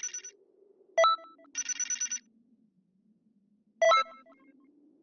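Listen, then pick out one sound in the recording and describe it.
A bright chime rings out.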